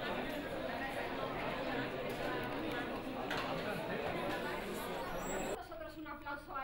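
A crowd of young people chatters in an echoing hall.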